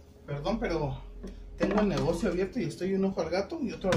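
A plastic scoop knocks against the rim of a glass jar.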